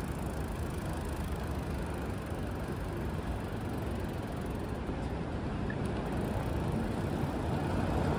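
A bicycle rolls along close by.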